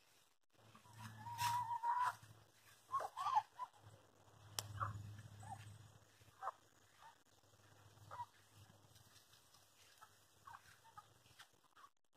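Chickens cluck softly close by.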